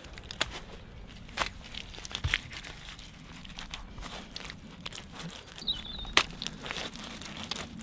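Wet mud is slapped and pressed onto woven sticks.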